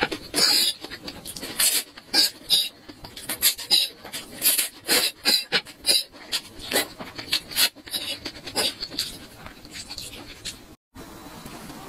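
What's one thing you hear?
A young woman slurps noodles loudly, close to the microphone.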